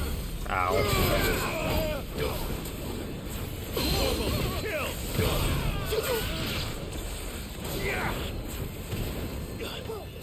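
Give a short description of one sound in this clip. Blades clash and strike with sharp impacts.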